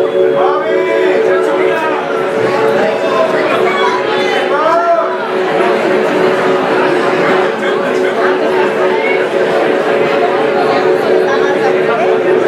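An electric bass guitar plays loudly through speakers.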